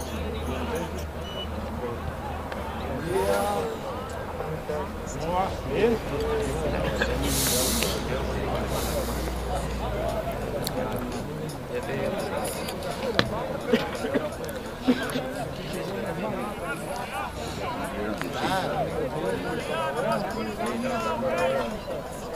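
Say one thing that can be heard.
Distant men and women shout and call out across an open outdoor field.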